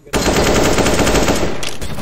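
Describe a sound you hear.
A rifle fires a rapid burst of gunshots.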